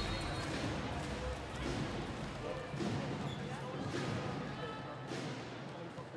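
A volleyball bounces on a hard floor.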